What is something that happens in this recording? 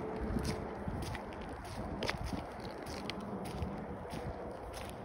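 Footsteps crunch on gritty, wet pavement.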